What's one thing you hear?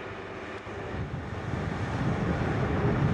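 A diesel train engine rumbles close by.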